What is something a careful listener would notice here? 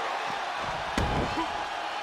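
A heavy body slams onto the floor with a thud.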